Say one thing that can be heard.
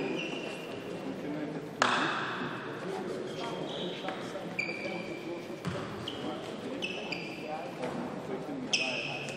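Sports shoes squeak sharply on a court floor in an echoing hall.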